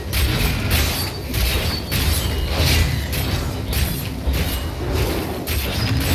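Magic spells crash and whoosh in rapid bursts.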